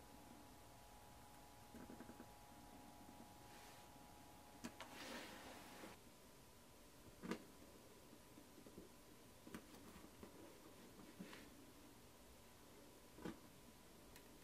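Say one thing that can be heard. A sharp awl scratches and pokes into leather with small quiet clicks.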